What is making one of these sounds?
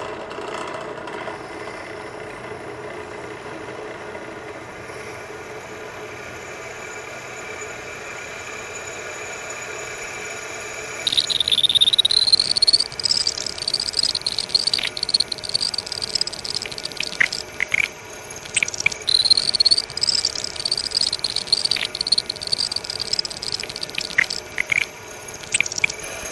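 A drill press hums steadily.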